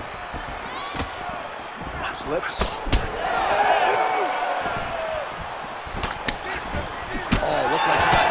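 Kicks and punches land with sharp thuds.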